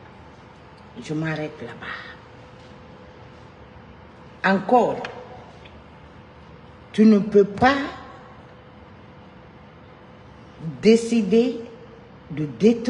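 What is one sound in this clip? A middle-aged woman speaks with emphasis in short bursts, close to a microphone.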